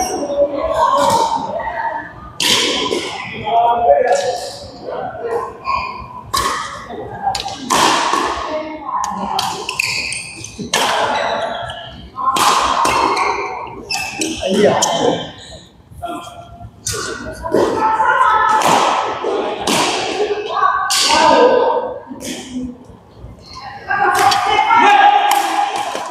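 Men talk and call out across an echoing hall.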